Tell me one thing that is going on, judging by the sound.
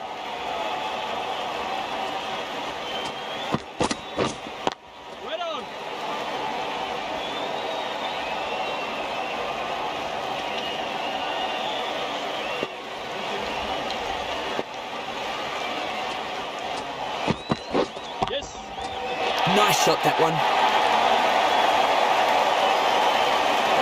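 A large crowd murmurs and cheers steadily, swelling louder near the end.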